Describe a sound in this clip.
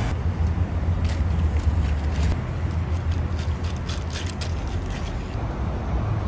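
Ice cubes clink as a spoon stirs a drink.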